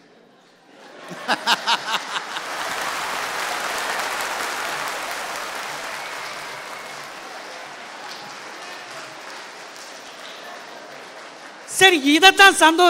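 A large crowd claps and cheers.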